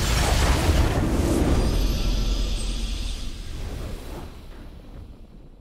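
A triumphant fanfare swells, then slowly fades away.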